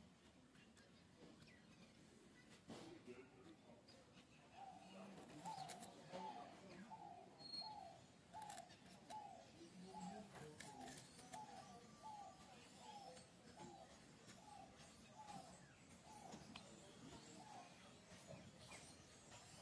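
A monkey crunches and chews on sugarcane close by.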